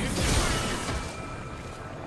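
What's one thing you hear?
Magical spell effects whoosh and crackle.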